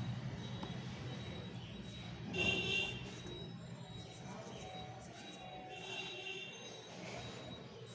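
A pen taps against the inside of an ink pot.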